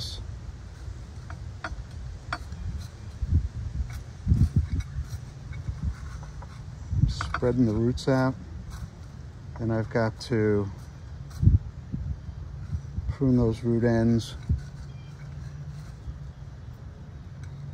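Fingers scratch and rustle in potting soil.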